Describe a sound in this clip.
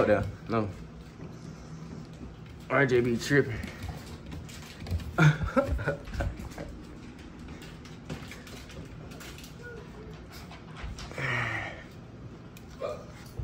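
A puppy's claws patter and click on a wooden floor.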